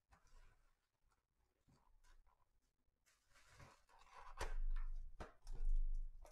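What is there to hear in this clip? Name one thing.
A cardboard box lid is pried open.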